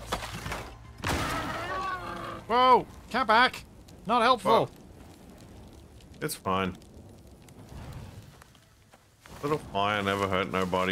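Flames whoosh and crackle.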